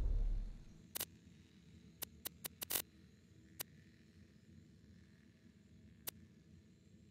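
Short menu clicks sound as a list is scrolled through.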